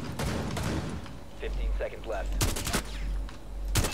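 Rifle shots fire in quick bursts.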